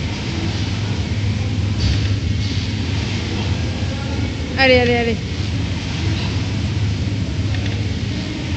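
A rowing machine flywheel whirs steadily in a large echoing room.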